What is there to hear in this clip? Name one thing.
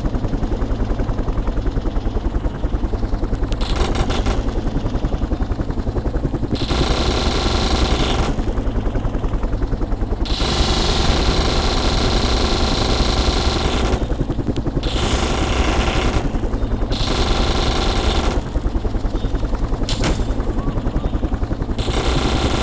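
Helicopter rotor blades thump steadily and loudly.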